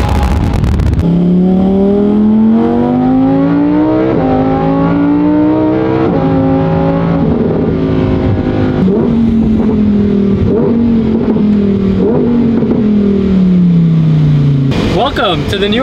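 A car engine revs up and shifts gears from inside the cabin.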